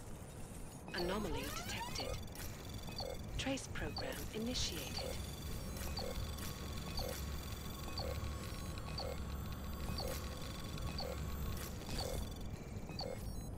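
A low electronic hum drones.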